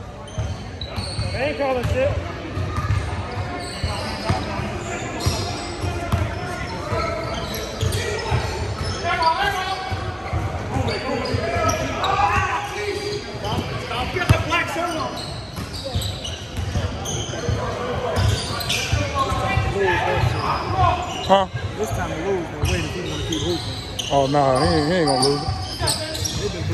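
Men call out to each other during play.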